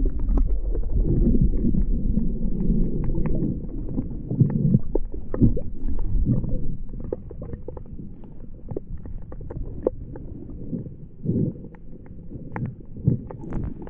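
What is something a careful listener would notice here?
Small clicks and crackles sound underwater.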